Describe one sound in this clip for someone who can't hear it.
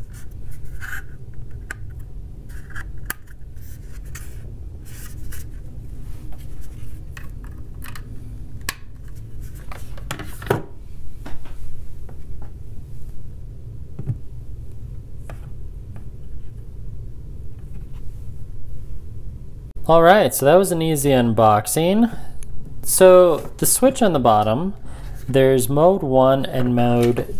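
Plastic parts click and tap as hands handle them.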